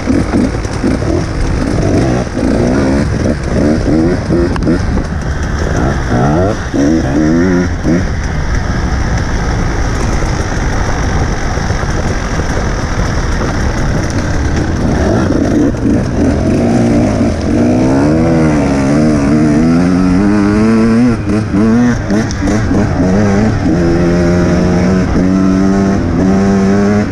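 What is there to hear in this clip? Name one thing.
A second dirt bike engine buzzes a little way ahead.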